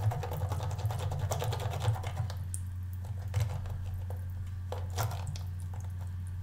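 Water trickles from a tap into a sink.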